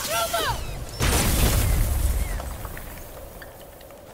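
A huge stone seal bursts apart with a deep rumbling blast.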